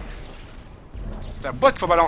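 A gun fires.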